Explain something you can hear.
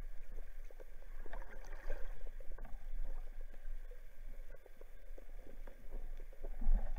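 Muffled water crackles and bubbles close by underwater.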